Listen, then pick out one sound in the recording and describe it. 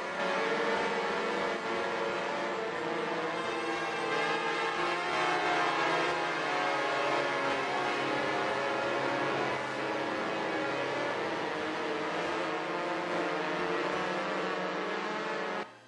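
Synthesized instruments play slow, sustained, layered chords.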